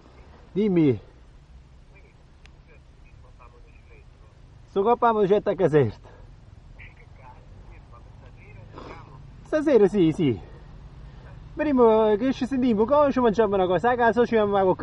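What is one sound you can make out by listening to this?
A dirt bike engine revs up and down sharply, close by.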